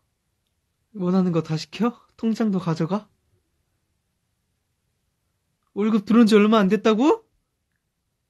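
A young man speaks softly and close up.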